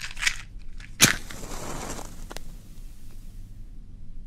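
A match strikes and flares into flame.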